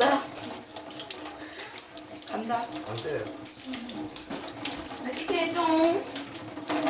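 Dishes clink in a sink.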